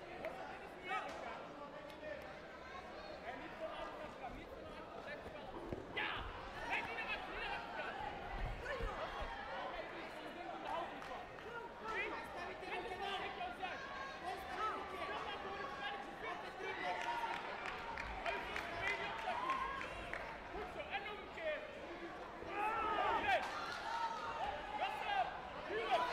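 A crowd of spectators shouts and cheers in a large echoing hall.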